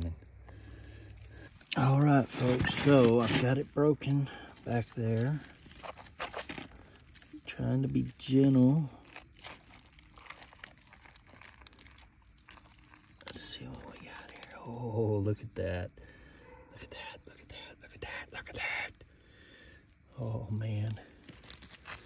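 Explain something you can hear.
Clumps of dry earth crumble and scrape under a hand.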